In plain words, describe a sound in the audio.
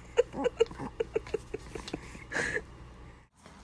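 A baby blows bubbles with little wet pops and sputters, close by.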